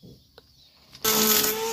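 A power tool whirs loudly as it starts up.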